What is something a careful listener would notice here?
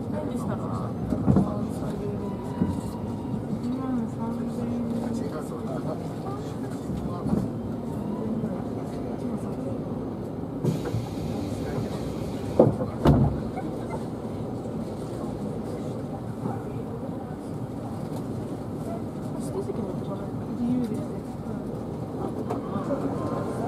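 A train's interior hums steadily.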